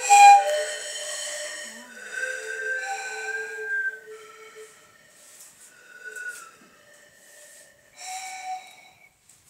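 A young girl sings into a microphone.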